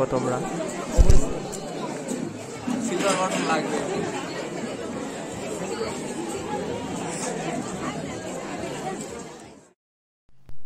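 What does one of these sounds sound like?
A crowd of guests chatters around the microphone.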